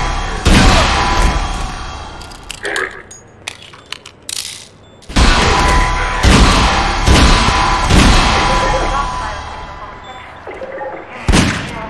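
A pistol fires loud shots that echo in a hard room.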